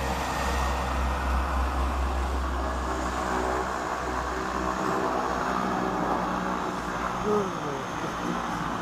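Propeller aircraft engines drone steadily as a small plane taxis nearby.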